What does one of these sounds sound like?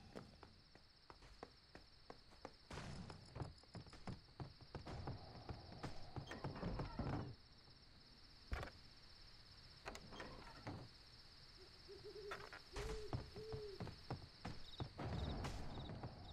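Quick footsteps tap on a hard floor.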